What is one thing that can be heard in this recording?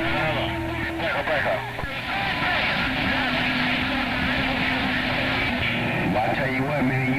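A radio receiver hisses with crackling static.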